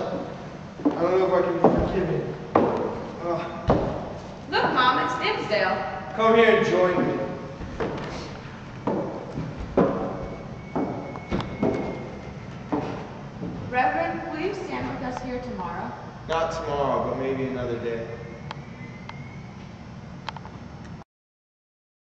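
A young man speaks loudly in an echoing hall.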